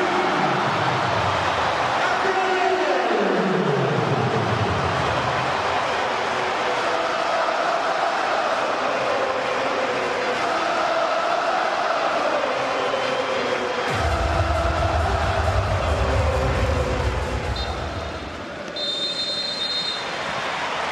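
A large stadium crowd chants and sings loudly.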